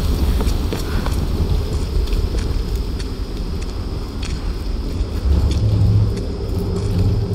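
A torch flame crackles and flickers.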